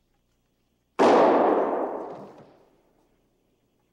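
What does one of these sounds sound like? A door slams shut with a loud bang that echoes away.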